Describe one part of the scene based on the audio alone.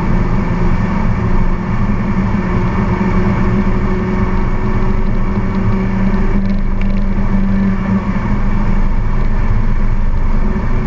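A car engine drones loudly at speed inside the cabin.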